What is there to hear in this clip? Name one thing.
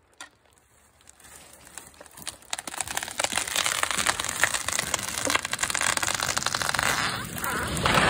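A large tree creaks and cracks as its trunk splits.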